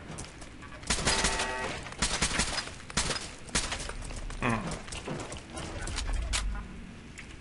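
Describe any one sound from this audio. Heavy metal footsteps clank on a hard floor.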